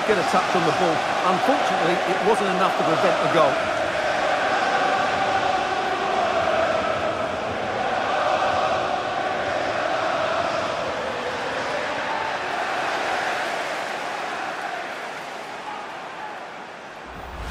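A stadium crowd roars loudly and cheers.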